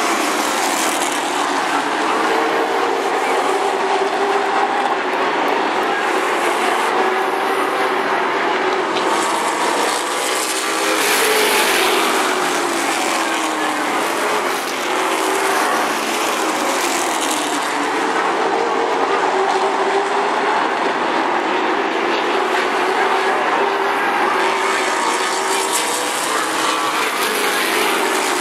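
Race car engines roar loudly as the cars speed around a track.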